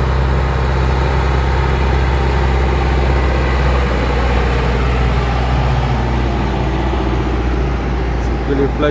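A boat engine roars steadily.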